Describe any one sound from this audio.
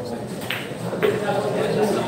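Billiard balls clack together.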